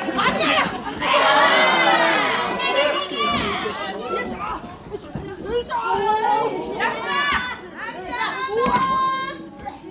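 Young women shout and scream loudly.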